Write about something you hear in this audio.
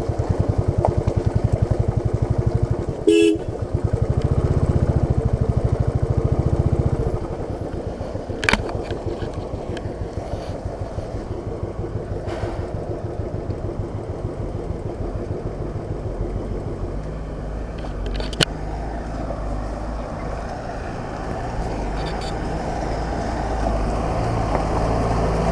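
A motorcycle engine thumps steadily close by, revving harder at times.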